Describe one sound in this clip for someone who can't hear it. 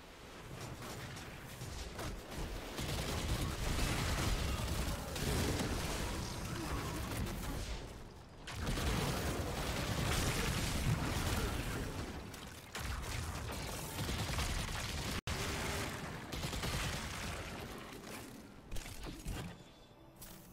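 Gunfire and explosions rattle rapidly and loudly.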